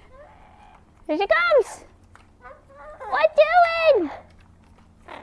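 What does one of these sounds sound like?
A parrot squawks loudly with rising and falling calls.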